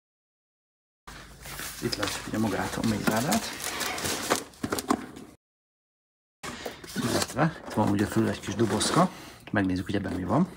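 Cardboard boxes rustle and scrape as they are handled.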